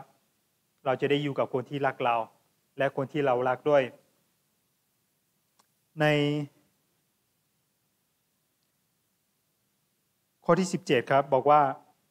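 A young man speaks calmly into a microphone, pausing between phrases.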